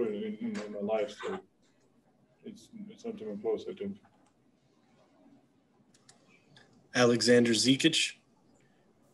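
A young man speaks calmly into a microphone, in short bursts.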